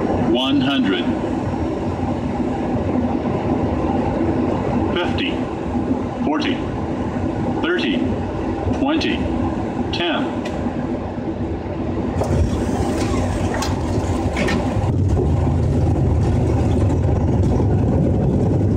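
Aircraft engines roar steadily.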